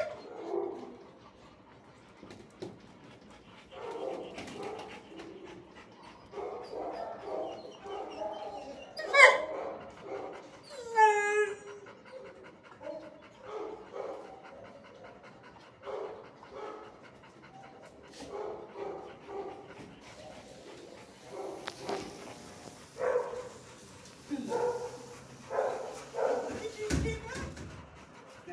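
A dog pants heavily nearby.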